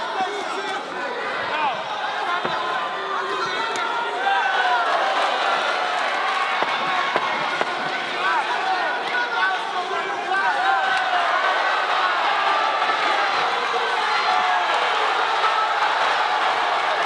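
A crowd shouts and cheers loudly in a large hall.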